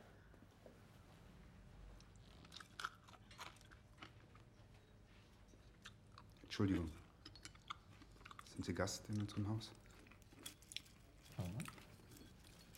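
Cutlery clinks and scrapes against a plate.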